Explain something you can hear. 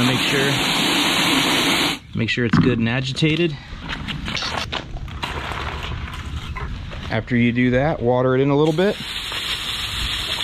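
Water sprays hard from a hose nozzle with a steady hiss.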